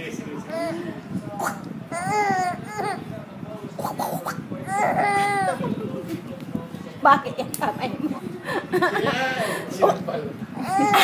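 A baby coos and squeals happily close by.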